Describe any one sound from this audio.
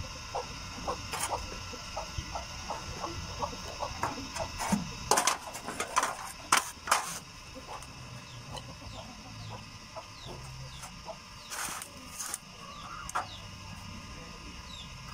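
A wooden pump drill spins with a soft whirring and rhythmic clacking.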